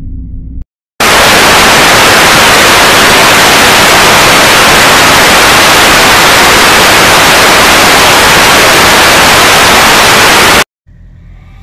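Loud television static hisses steadily.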